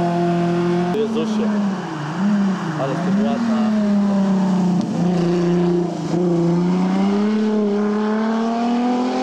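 A tuned car engine roars and crackles through tight bends.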